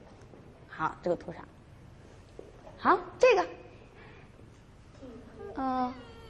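A young woman speaks with animation in an echoing room.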